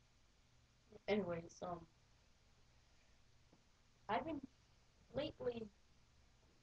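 A boy speaks loudly and with animation close by, in short bursts.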